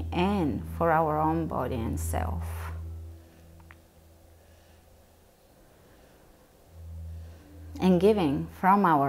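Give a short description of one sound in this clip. A woman speaks slowly and calmly, close by.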